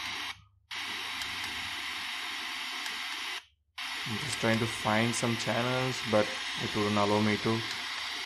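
A button on a small speaker clicks.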